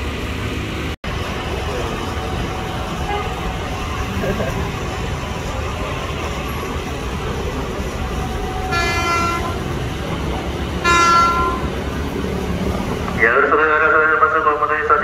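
A train rumbles as it approaches along the tracks.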